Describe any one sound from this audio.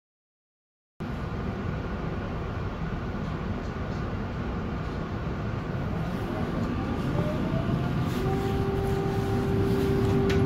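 A tram rumbles and rattles steadily along its rails, heard from inside.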